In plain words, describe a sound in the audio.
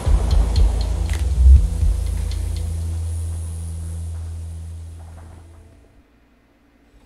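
A car engine rumbles steadily, then fades away.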